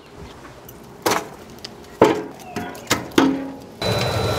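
Wooden logs knock against metal.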